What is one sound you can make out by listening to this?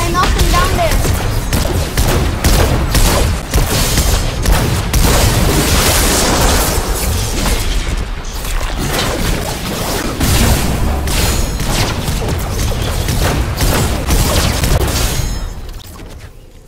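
Melee weapons swing and strike with sharp thuds and whooshes.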